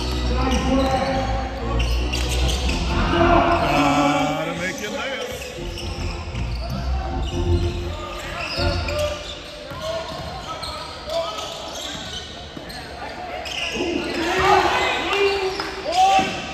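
Spectators cheer and shout in an echoing gym.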